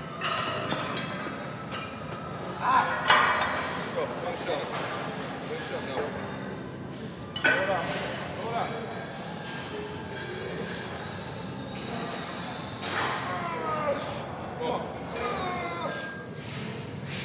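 A man speaks with encouragement nearby.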